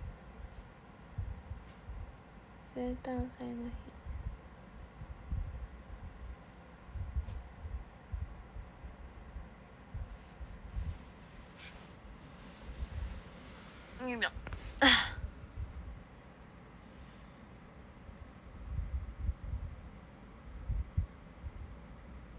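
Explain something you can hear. Fingers rub and brush through hair close by.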